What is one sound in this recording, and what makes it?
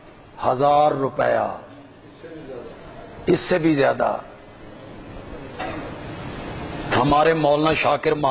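A middle-aged man speaks calmly and earnestly into a microphone, in bursts with pauses.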